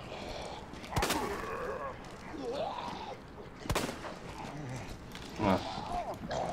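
Gunshots crack and echo.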